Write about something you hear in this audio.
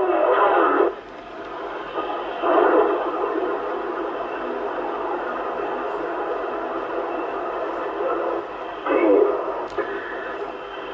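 A radio receiver hisses and crackles with static as it is tuned.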